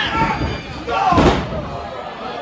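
A wrestler slams down hard on a wrestling ring mat.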